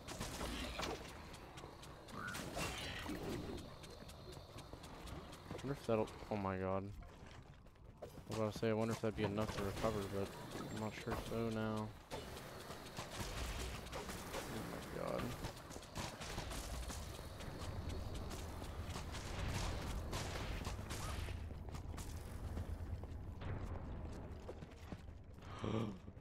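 Video game combat sounds clash and thud in quick bursts.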